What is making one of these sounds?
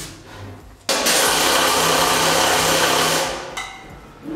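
A woodworking machine runs with a loud whirring roar.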